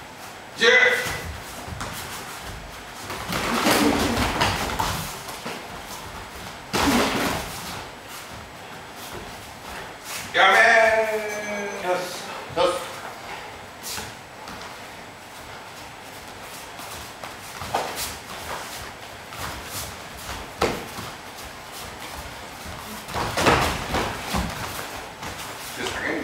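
Bare feet shuffle and stamp on a mat.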